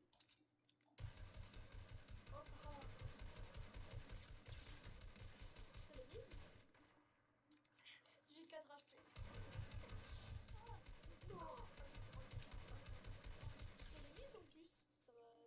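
A rapid-fire gun shoots in long bursts.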